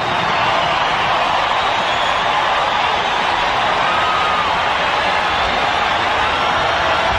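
A huge stadium crowd cheers and roars loudly throughout.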